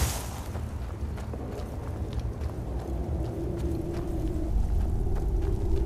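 Magical flames crackle softly in a character's hands.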